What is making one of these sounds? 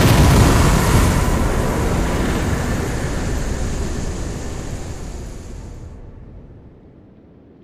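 A loud magical rushing roar swells and slowly fades away.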